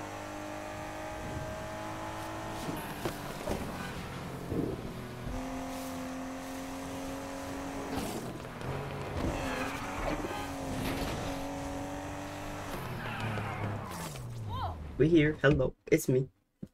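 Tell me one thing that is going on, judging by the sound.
A racing car engine revs high and shifts gears.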